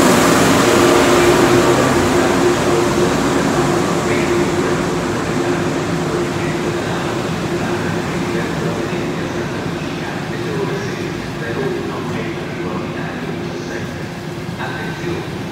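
Train wheels hum and whine against the rails.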